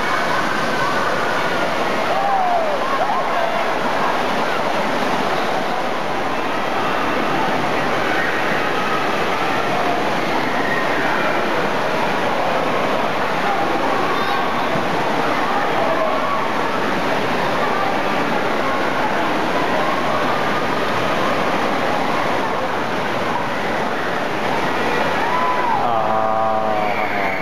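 Water splashes and pours down loudly in a large echoing hall.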